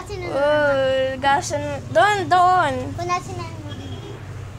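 A young child talks and squeals loudly, close by.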